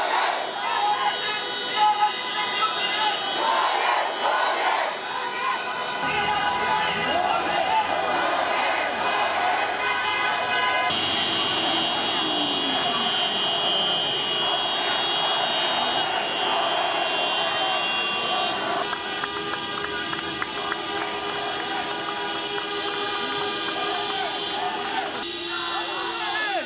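A large crowd of young men and women chants and shouts outdoors.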